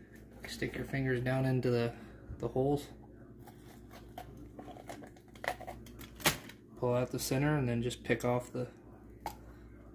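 A bell pepper crunches and snaps as hands pull it apart.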